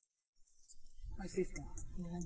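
A woman talks at a distance outdoors.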